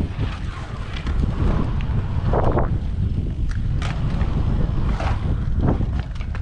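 Bike tyres roll and hum over concrete.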